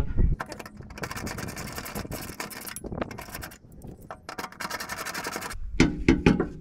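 A socket wrench ratchets rapidly against a bolt.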